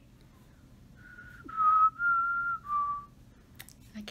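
A young woman whistles a short tune.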